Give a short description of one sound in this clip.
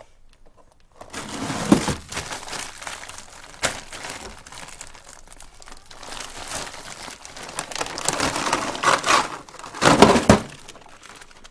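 A plastic bag crinkles and rustles as a hand handles it.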